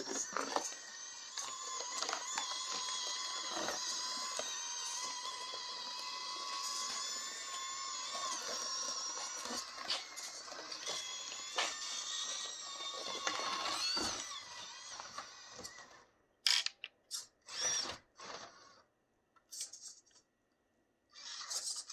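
A small electric motor whines steadily, then in short bursts.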